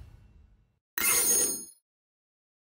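A bright sparkling chime rings out.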